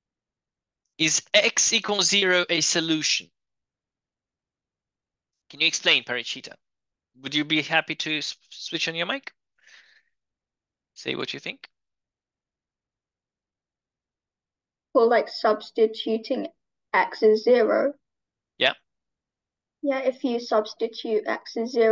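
A man speaks calmly into a microphone, explaining in bursts with pauses.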